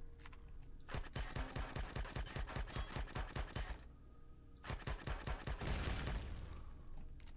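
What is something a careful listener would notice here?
A rapid-fire gun shoots in quick bursts with loud blasts.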